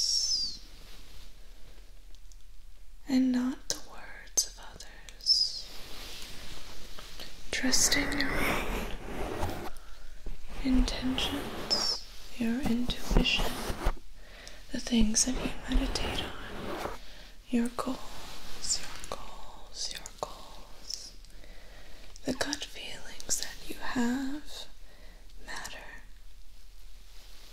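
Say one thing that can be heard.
A young woman whispers softly and closely into a microphone.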